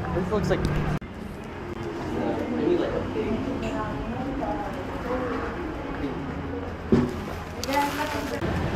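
Voices murmur in a busy room.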